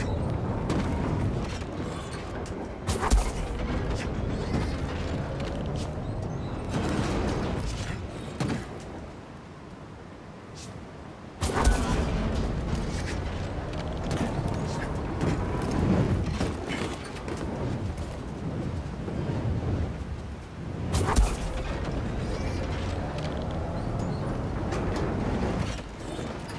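Footsteps clatter on metal walkways.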